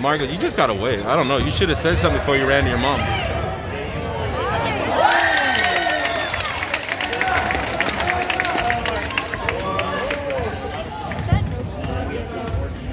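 Young spectators shout and cheer loudly in a large echoing gym.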